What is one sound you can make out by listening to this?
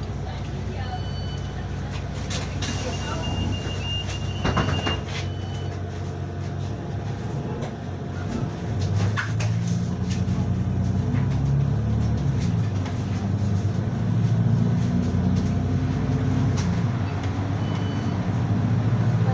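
A bus engine hums low and steady, then grows louder and rises as the bus pulls away.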